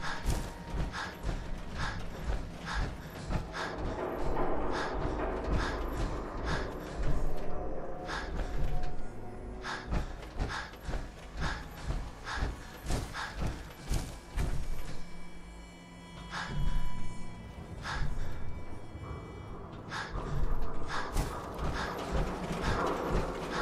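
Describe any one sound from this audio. Heavy metal footsteps thud steadily on rubble.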